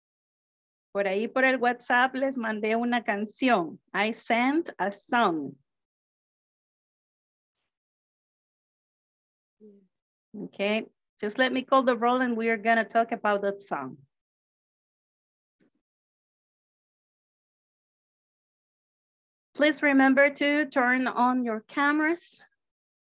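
A woman speaks calmly through an online call, with pauses between phrases.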